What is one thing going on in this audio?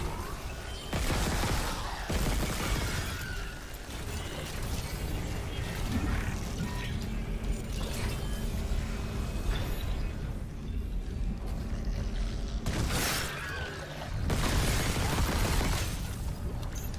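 A gun fires in loud bursts.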